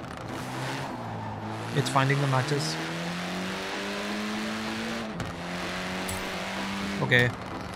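A racing car engine revs hard and rises in pitch through the gears.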